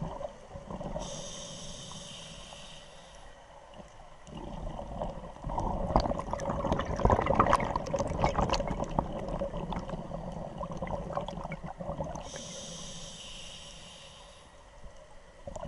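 A diver's regulator hisses with each breath.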